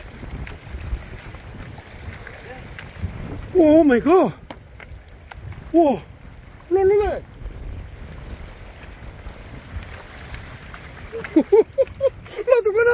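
Small waves lap gently against rocks.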